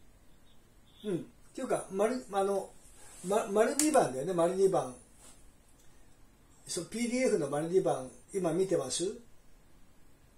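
A middle-aged man speaks calmly into a phone close by.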